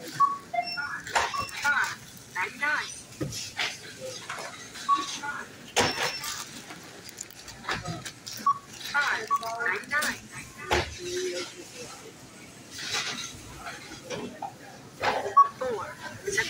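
A checkout scanner beeps.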